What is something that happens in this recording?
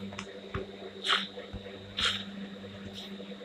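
Dirt crunches as a shovel digs.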